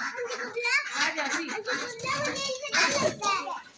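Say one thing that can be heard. Wings flap as birds scatter.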